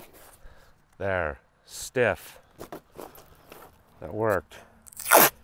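A tape measure zips out and snaps back with a whirring rattle.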